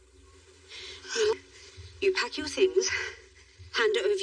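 A young woman speaks with distress, close by.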